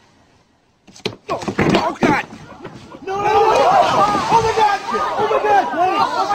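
A crowd laughs loudly and shouts.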